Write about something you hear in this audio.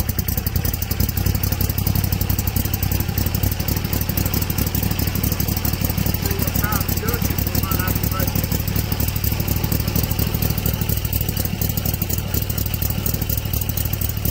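A middle-aged man talks calmly, close by, over the running motor.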